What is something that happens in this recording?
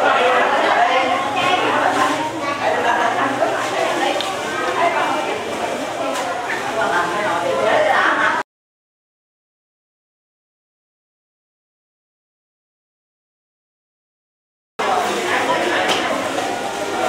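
A crowd of men and women chatter all around in a busy echoing room.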